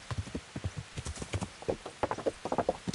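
A horse's hooves clatter on wooden boards.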